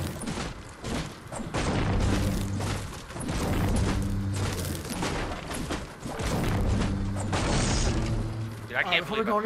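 A pickaxe chops at wooden pallets.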